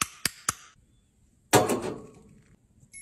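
Glass pieces clink in a bowl.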